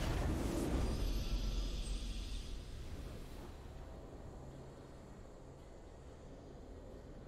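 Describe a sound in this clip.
A triumphant victory fanfare swells and fades.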